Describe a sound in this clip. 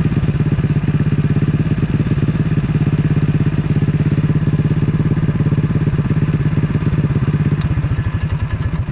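A small engine idles with a fast, steady chugging throb, close by.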